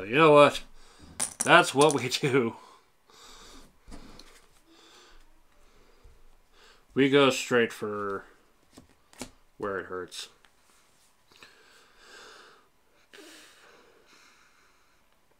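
Playing cards slide and tap on a table.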